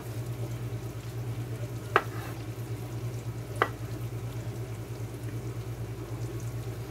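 Food sizzles softly in a frying pan.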